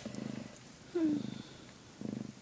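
A kitten gives a short high mew.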